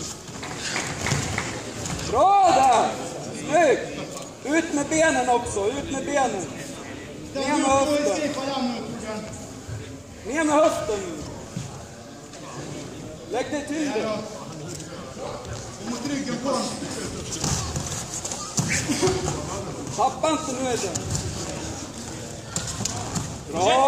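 Bodies thump and shuffle on a mat.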